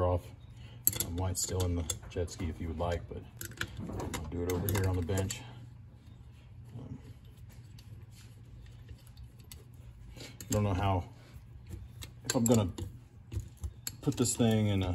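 Hard plastic parts knock and rattle as they are handled.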